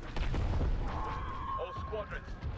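A huge explosion booms with a deep rumble.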